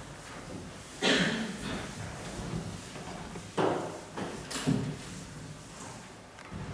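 An eraser rubs across a chalkboard in short, scratchy swipes.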